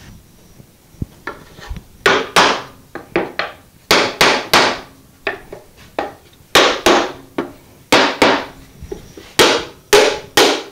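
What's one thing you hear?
A mallet taps a wooden peg into a wooden box with sharp knocks.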